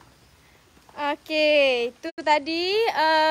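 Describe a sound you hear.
A young woman speaks close up in a drawn-out, sing-song voice.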